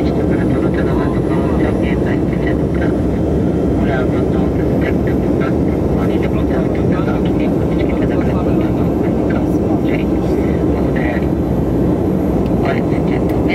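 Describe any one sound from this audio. An aircraft engine drones steadily from inside the cabin.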